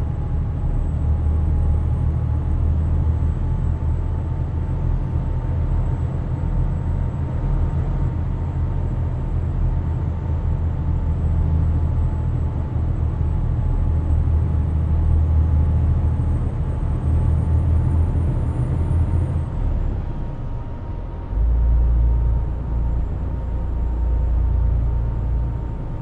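Tyres roll on the road with a steady hum.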